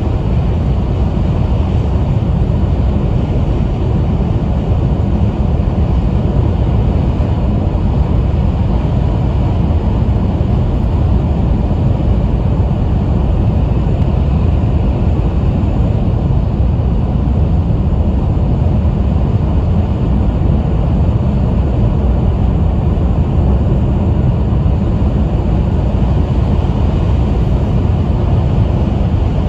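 A fast train rumbles steadily along the track, heard from inside the carriage.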